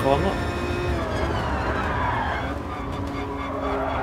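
A racing car engine drops in pitch as the car slows into a corner.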